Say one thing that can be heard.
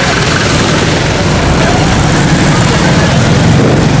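A motorcycle rides past close by.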